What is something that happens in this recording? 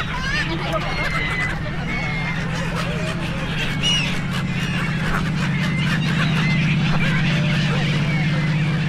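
Seagulls cry and squawk overhead.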